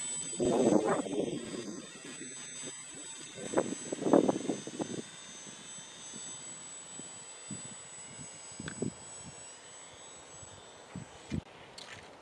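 A small model aircraft motor whines steadily overhead and slowly fades.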